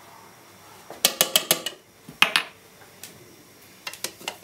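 A spoon taps against a glass.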